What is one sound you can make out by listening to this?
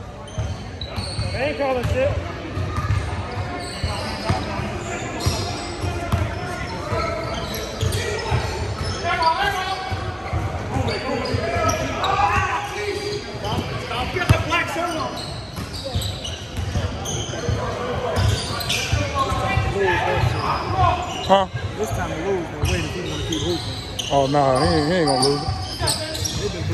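Sneakers squeak on the gym floor.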